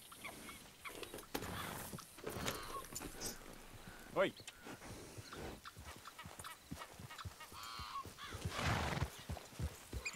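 Horse hooves thud on grass.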